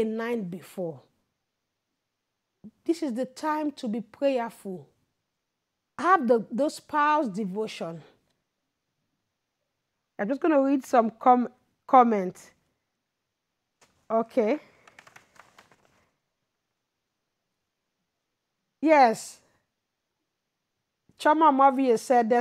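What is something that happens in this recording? A woman speaks expressively into a close microphone, with pauses.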